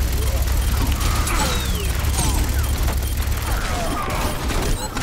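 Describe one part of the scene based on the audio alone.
A rapid energy weapon fires in bursts.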